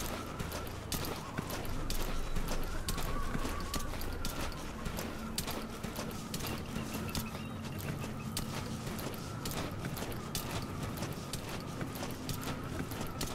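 A body crawls through dry grass with soft rustling.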